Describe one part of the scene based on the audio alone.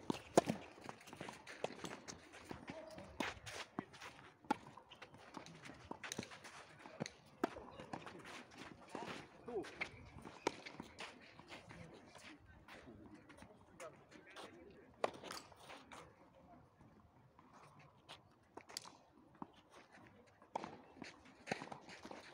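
Shoes scuff and slide on a clay court.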